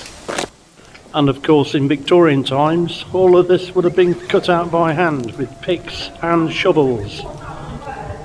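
A man talks calmly and close by, with a slight echo.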